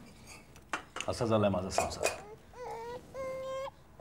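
Steel plates and cups clink softly.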